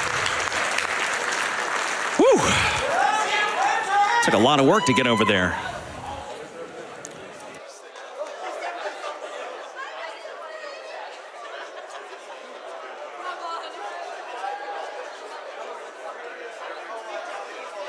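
A crowd of people murmurs and chatters in a large hall.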